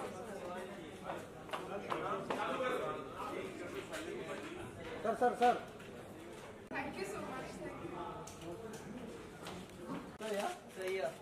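Several men and women talk and greet each other nearby.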